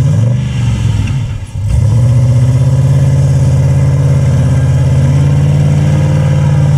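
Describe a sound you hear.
A big truck engine roars loudly close by, dipping briefly and then revving up again.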